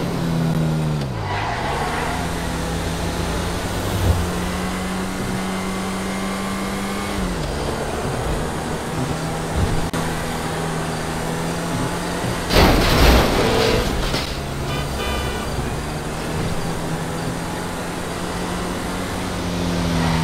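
A sports car engine drones at speed.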